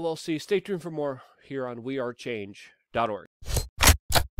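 A man talks calmly and close into a microphone.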